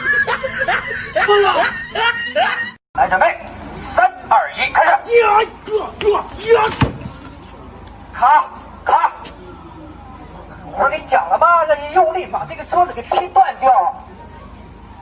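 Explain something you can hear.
Men talk with animation nearby.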